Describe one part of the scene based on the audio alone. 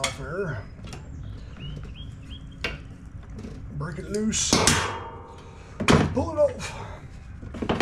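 Plastic parts click and rattle as hands work on a lawn mower engine.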